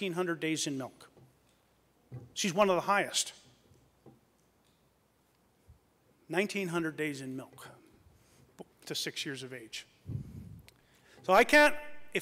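A middle-aged man speaks into a microphone in a lively, animated way, in short bursts with pauses.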